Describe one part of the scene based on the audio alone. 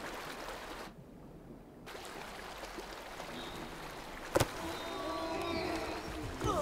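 Water splashes and sloshes.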